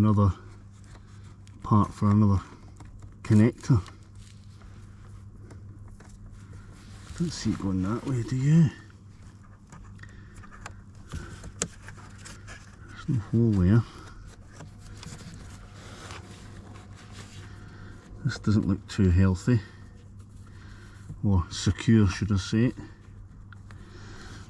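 Cables rustle and scrape as hands pull and push them into place.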